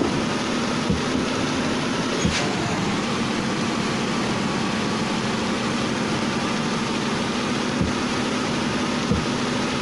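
Windscreen wipers swish across glass.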